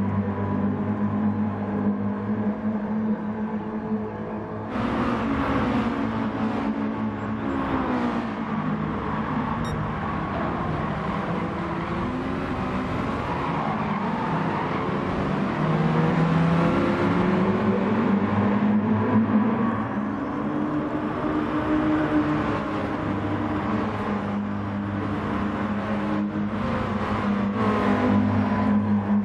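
A race car engine roars and revs up and down as it shifts gears.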